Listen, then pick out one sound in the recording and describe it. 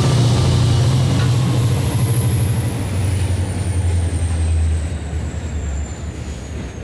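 A locomotive engine rumbles loudly and fades as it passes.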